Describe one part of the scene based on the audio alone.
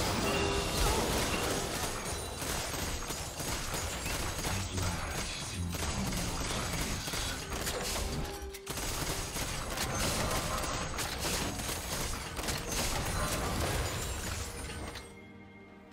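Video game battle effects clash, zap and burst rapidly.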